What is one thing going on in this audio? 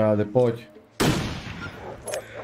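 A rifle fires a single loud shot that rings out.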